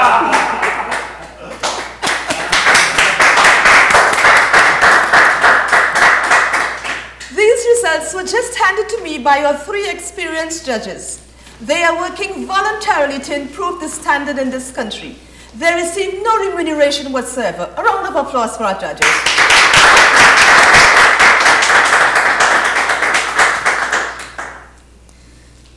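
A crowd claps and applauds loudly.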